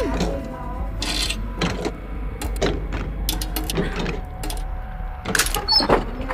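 Hands rummage through a metal chest with clicks and rattles.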